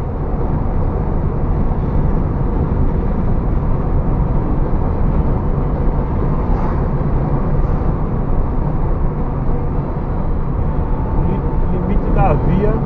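Tyres roll on the road with a low rumble.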